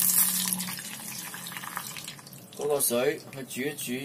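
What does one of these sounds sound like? Liquid pours into a clay pot.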